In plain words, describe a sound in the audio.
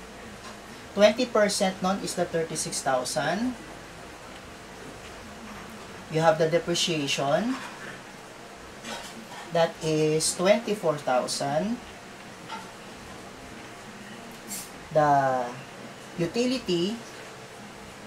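A young man explains calmly in short phrases, close by, with pauses between them.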